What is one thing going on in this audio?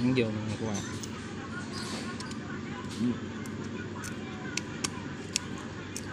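A battery clicks into a plastic holder.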